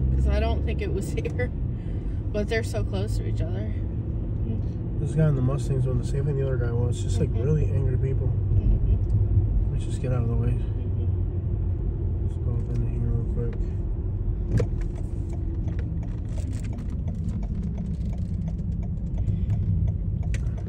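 A car drives along a paved road with a low, steady rumble.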